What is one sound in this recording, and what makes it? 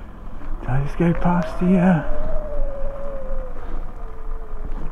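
A motorbike engine hums and rises, then slowly drops in pitch.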